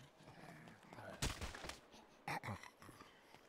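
Fists thud against a body in a fight.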